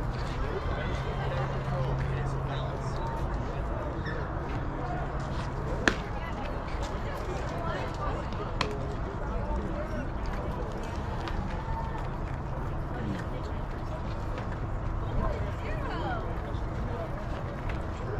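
People chatter and call out across an open field.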